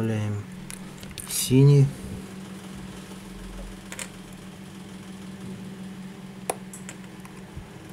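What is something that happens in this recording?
Metal tweezers tick lightly against small parts.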